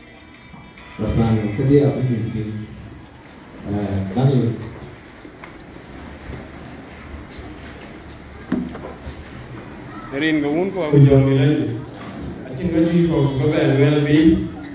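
A man speaks with animation through a loudspeaker in a large echoing hall.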